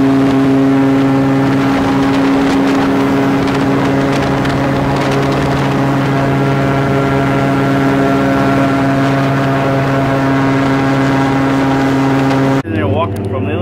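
An airboat engine and propeller roar loudly and steadily.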